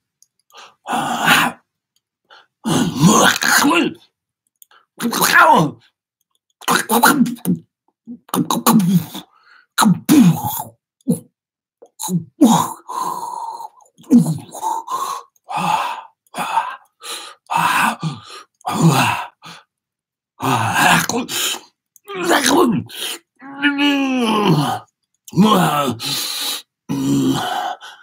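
A man speaks with animation into a microphone, amplified, in short bursts with pauses.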